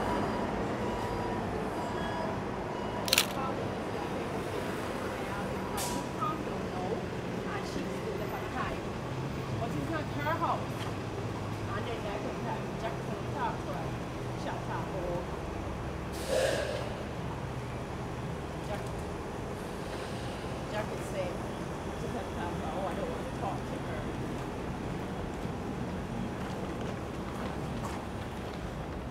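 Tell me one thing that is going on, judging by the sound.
Birds chirp in nearby trees.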